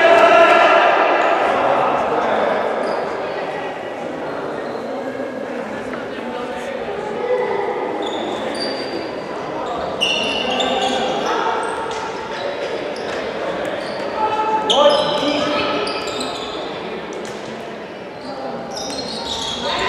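A ball bounces on the floor.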